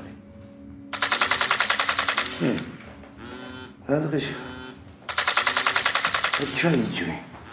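A phone rings in loud repeated bursts.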